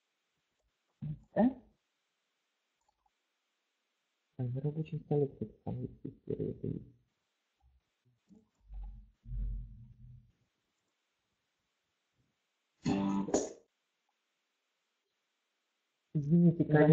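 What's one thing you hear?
A woman speaks calmly through an online call microphone.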